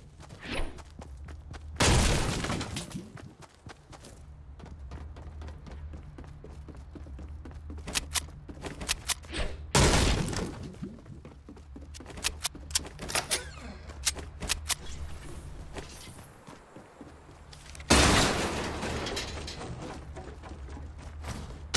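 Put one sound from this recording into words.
Quick footsteps patter on hard floors and stairs.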